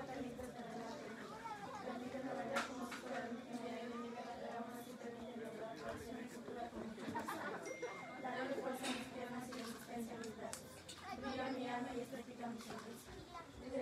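A group of young women sing together nearby.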